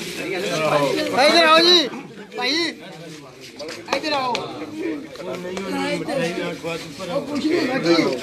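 Several men talk loudly and with animation close by, outdoors.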